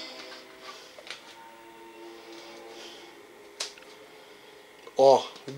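Soft music plays through a television speaker.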